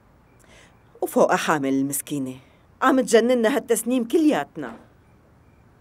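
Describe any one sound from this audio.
An elderly woman speaks in a pleading, upset voice nearby.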